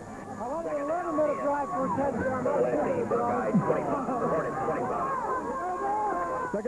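A crowd of young men shouts and cheers nearby.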